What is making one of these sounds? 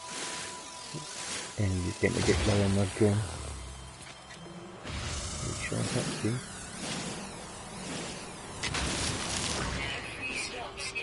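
An electronic laser beam buzzes and crackles in short bursts.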